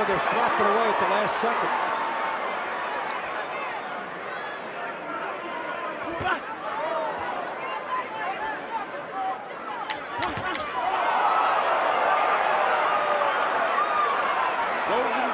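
A large crowd roars and cheers throughout.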